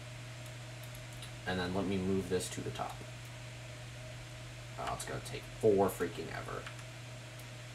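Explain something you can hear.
A computer mouse clicks softly.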